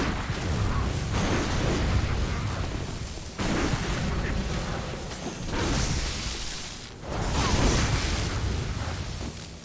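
Electricity crackles and hisses in sharp bursts.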